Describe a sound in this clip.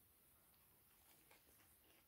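A young man bites into a burger and chews.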